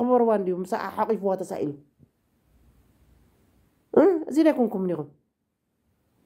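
A woman speaks expressively, close to a microphone, in two short phrases.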